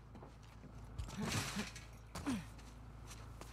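A body scrambles over a ledge with a brief thud and rustle.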